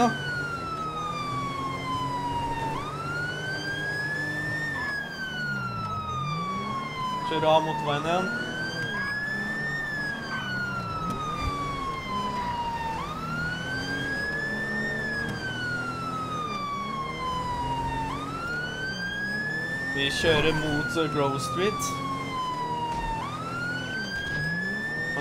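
A police siren wails, slowly rising and falling.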